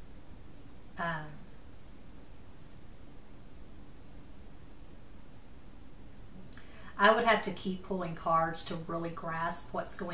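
A woman speaks calmly, close to the microphone.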